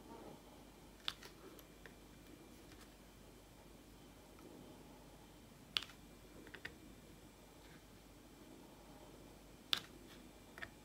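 A pen tool taps and clicks softly on a board.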